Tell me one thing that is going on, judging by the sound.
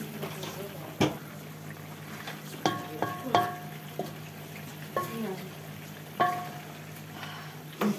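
A metal spoon clanks and scrapes against a metal pot.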